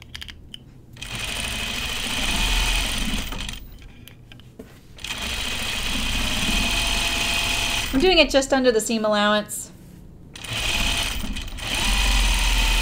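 A sewing machine runs in steady bursts with a fast whirring hum.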